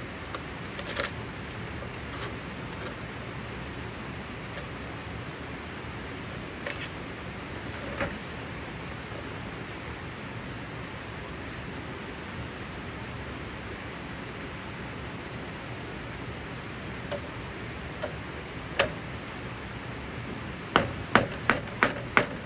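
A knife scrapes and shaves dry bamboo.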